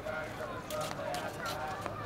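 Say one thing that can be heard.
A woman's footsteps pad softly on stone close by.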